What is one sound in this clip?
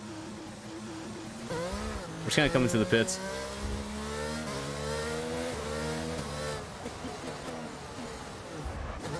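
A racing car engine revs high and shifts gears.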